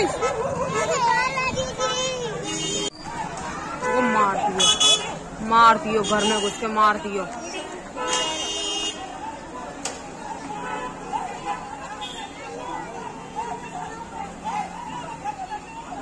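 A crowd of men shout and yell outdoors.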